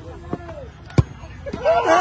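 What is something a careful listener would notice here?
A football is kicked with a hard thump.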